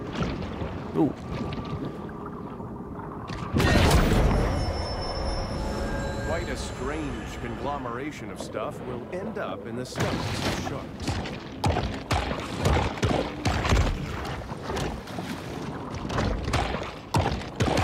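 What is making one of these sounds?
Water gurgles and swirls as a small creature swims underwater.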